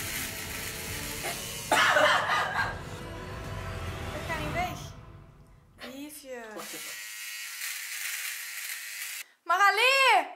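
An electric trimmer buzzes close by.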